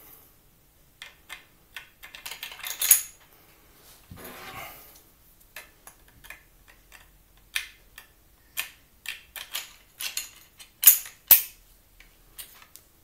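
A man handles a small object close by, with soft clicks and scrapes.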